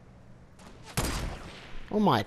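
A sniper rifle fires a single shot.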